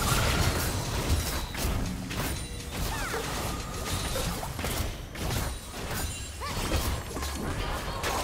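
Game spell effects crackle and whoosh in a fast fight.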